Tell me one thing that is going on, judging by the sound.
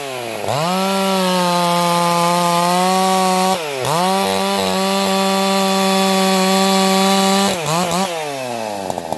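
A chainsaw roars at full throttle, cutting through a log.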